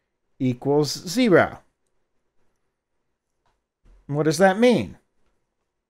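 An older man speaks into a headset microphone, lecturing in short phrases.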